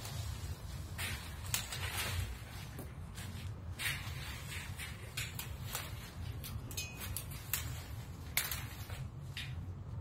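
Dry leaves and twigs rustle and crackle as they are tossed into a cart.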